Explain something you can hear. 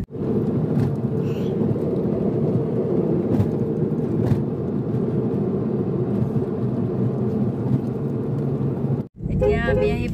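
A car engine and tyres rumble steadily on the road.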